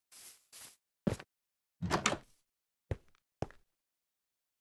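A wooden door bangs open and shut.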